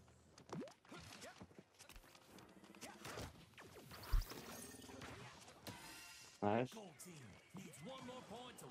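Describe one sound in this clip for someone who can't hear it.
Video game sound effects whoosh and clatter in quick bursts.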